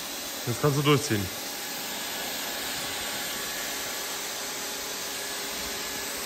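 A handheld power tool whirs steadily.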